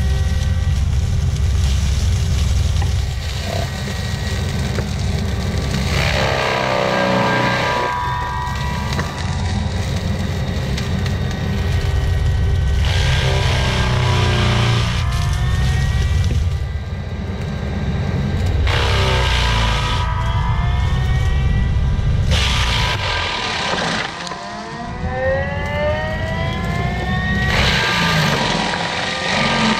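A heavy diesel engine roars steadily close by.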